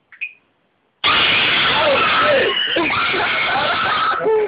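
A young man screams in fright.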